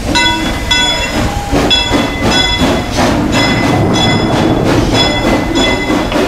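A small steam locomotive chuffs past close by.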